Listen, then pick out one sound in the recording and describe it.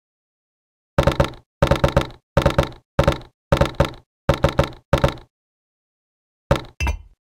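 Game blocks are placed with quick bursts of short knocking clicks.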